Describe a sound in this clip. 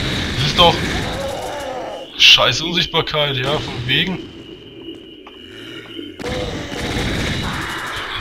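A fireball whooshes past and bursts with a blast.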